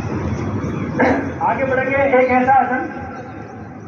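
A man speaks nearby in a raised voice outdoors.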